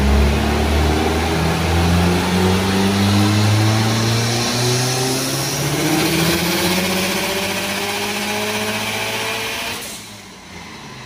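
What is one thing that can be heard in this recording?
A car engine roars loudly, revving higher and higher, then cuts off.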